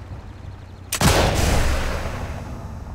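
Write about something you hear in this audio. A rifle fires a single loud, echoing shot.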